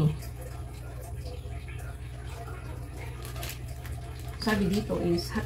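A plastic noodle packet crinkles in a woman's hands.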